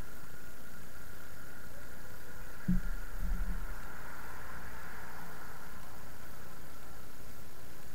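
A car approaches in the distance and drives closer.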